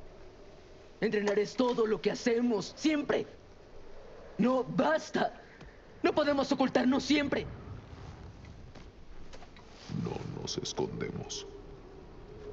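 A deep-voiced man speaks in a low, gruff voice.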